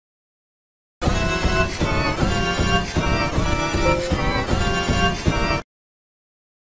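Loud music plays briefly and cuts off abruptly.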